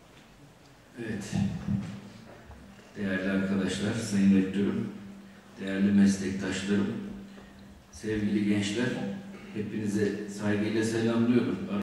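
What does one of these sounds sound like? A middle-aged man speaks calmly into a microphone in a large, echoing hall.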